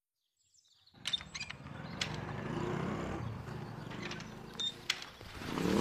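A metal gate creaks and clanks.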